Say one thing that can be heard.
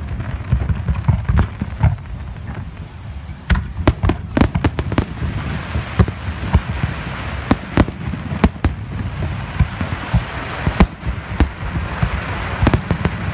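Fireworks burst with sharp cracks and bangs, echoing in the distance.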